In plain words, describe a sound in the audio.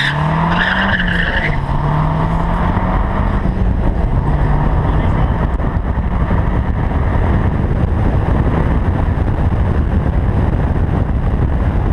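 Wind rushes past the moving car.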